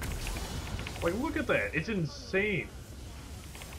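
A young man speaks excitedly into a nearby microphone.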